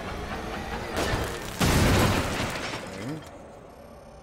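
A loud explosion booms and rumbles.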